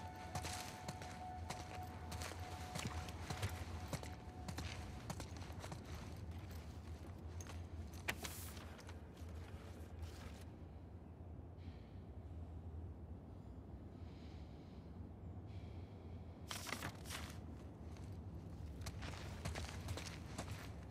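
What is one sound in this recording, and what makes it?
Footsteps splash on wet ground.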